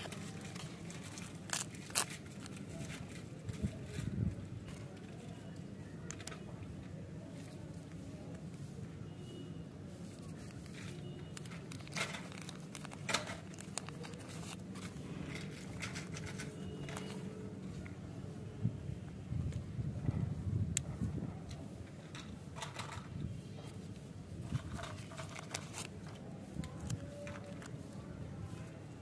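Paper wrappers crinkle and rustle as hands tear them open.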